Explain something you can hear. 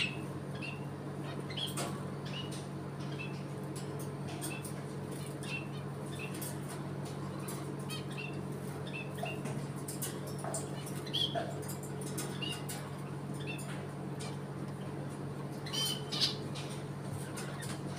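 A parrot chirps and squeaks in short calls.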